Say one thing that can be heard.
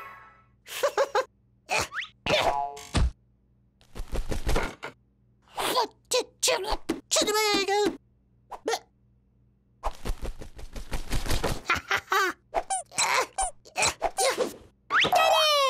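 A cartoon chick chirps and squeaks with animation.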